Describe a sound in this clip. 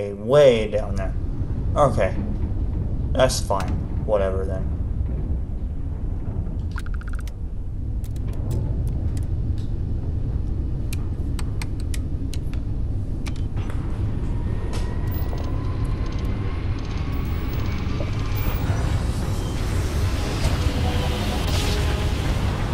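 A spaceship engine rumbles low and steady.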